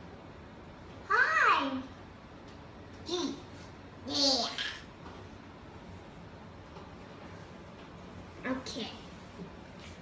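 A young boy talks with excitement.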